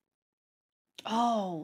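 A young woman speaks close into a microphone.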